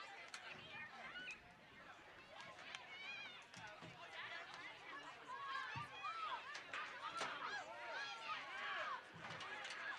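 A group of young women cheer and shout excitedly outdoors at a distance.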